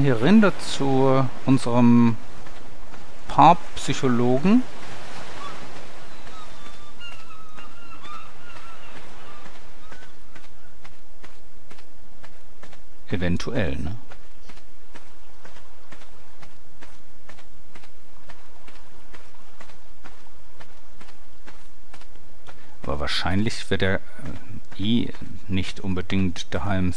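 Footsteps crunch steadily on sand and pebbles.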